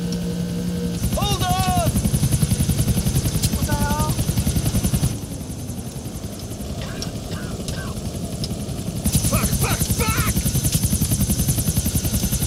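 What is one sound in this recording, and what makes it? A helicopter's rotor thumps rapidly overhead.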